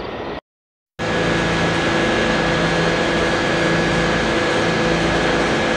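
A stopped subway train hums and whines steadily in an echoing underground station.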